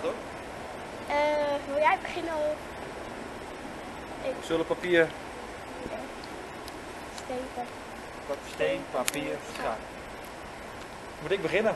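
A young girl speaks and laughs brightly.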